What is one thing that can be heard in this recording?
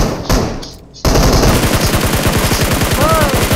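A rifle fires a long rapid burst.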